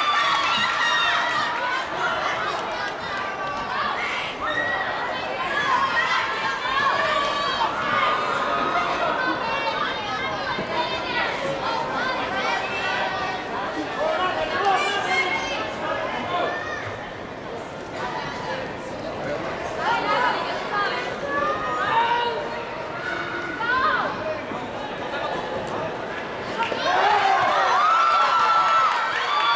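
A crowd of spectators chatters and shouts throughout a large echoing hall.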